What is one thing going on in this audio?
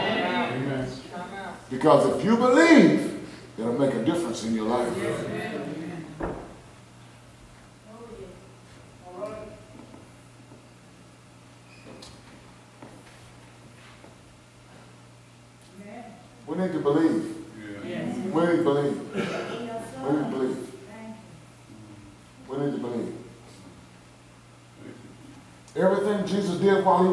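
A man speaks with feeling through a microphone, in a room with a slight echo, pausing at length between phrases.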